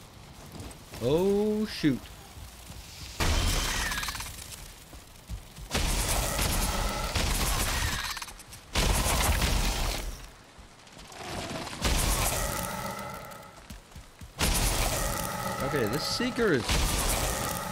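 A large creature screeches.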